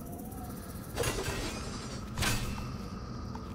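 A magic energy blast whooshes and crackles.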